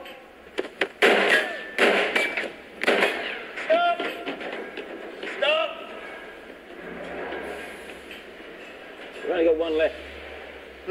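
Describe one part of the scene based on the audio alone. A man shouts sharply.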